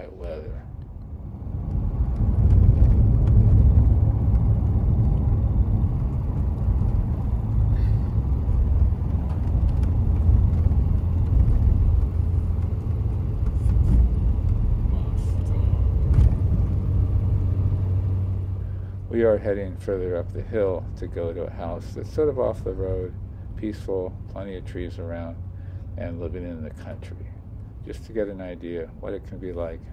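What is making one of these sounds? A car engine hums low and steady as the car drives along a road.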